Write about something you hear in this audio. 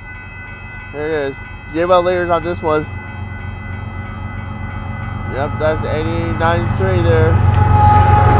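A train horn blows loudly several times as a train approaches.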